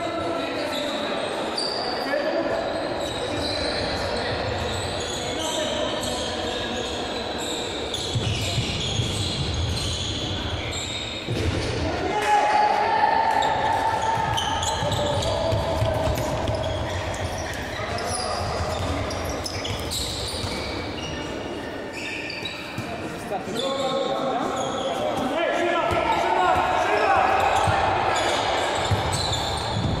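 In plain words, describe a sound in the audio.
Boys shout and call out across the echoing hall.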